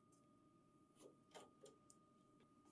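A metal panel clatters lightly as it is lifted away.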